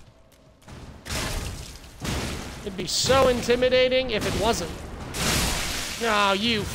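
Sword slashes and heavy impacts crash loudly.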